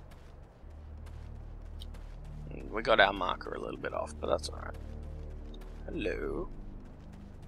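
Footsteps crunch on gravelly ground.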